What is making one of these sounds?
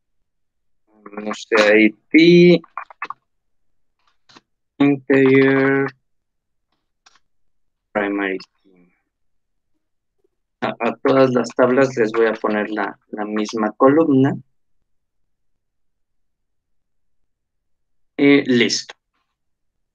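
A man speaks calmly into a microphone, heard as if over an online call.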